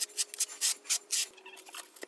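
A notched trowel scrapes across wet tile adhesive.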